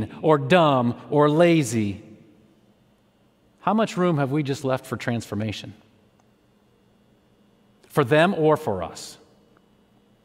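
A young man speaks calmly into a microphone, pausing between phrases.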